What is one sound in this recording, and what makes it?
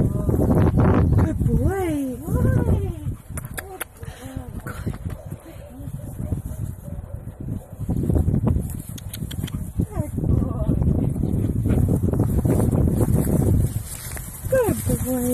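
Footsteps crunch and rustle through dry grass.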